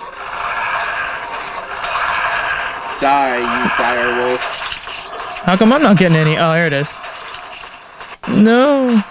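Fantasy battle sound effects play from small tablet speakers.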